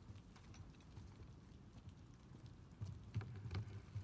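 Footsteps thud on a wooden floor.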